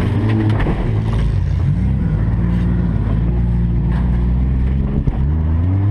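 A car engine roars and revs, rising and falling in pitch.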